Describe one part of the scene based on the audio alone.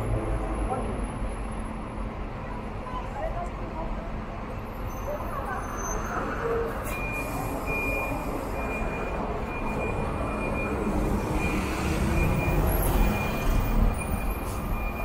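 Traffic hums steadily outdoors.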